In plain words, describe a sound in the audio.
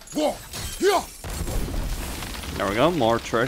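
Flames burst with a roaring whoosh.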